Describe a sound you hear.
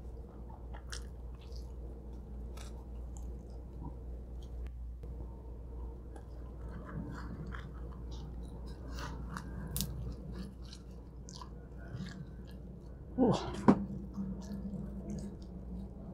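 A young woman chews food close to a microphone with soft, wet crunching.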